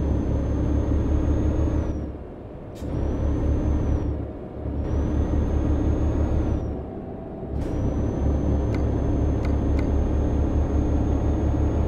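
A diesel truck engine accelerates through the gears.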